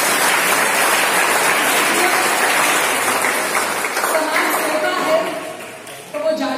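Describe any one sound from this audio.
A middle-aged woman speaks calmly into a microphone, heard through a loudspeaker.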